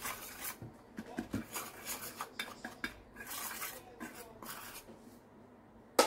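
A wire whisk scrapes and rattles in a metal bowl.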